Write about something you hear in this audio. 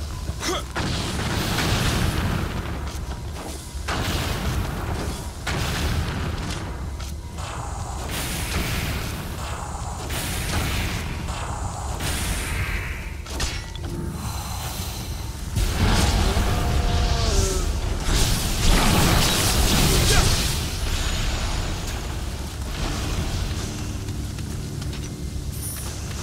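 Fire roars and crackles in bursts.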